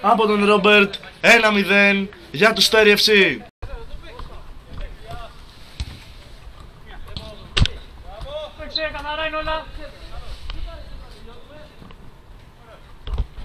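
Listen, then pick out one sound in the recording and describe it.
Men shout and call out to each other across an outdoor pitch.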